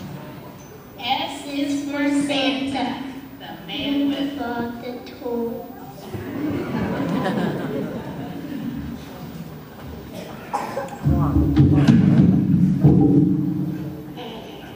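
A large choir of young children sings together in an echoing hall.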